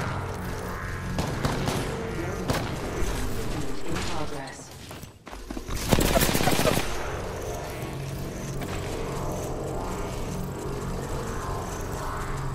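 Electric arcs crackle and zap.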